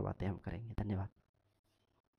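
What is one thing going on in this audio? A young man speaks loudly and briskly, close to the microphone.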